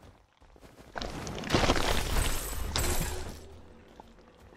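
A magic blast whooshes and crackles loudly.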